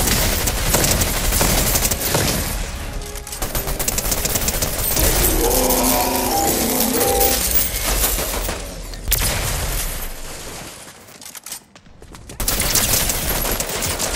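Guns fire in rapid bursts close by.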